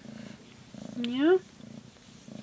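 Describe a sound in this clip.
A cat gives a short rising meow.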